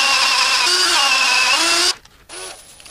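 A power drill whirs at high speed.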